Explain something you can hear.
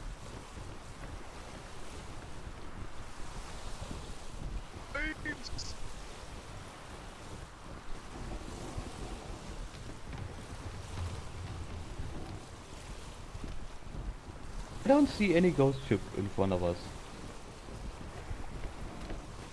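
Waves wash steadily against a wooden ship.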